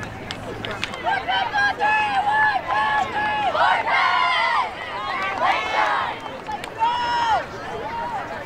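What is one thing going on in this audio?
A group of young women chant and cheer loudly in unison outdoors.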